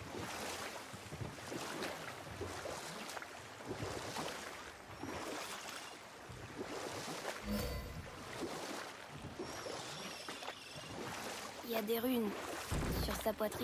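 Oars splash and paddle through water.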